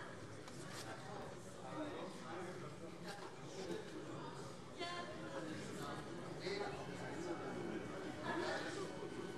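A middle-aged man speaks calmly through a microphone in a large hall.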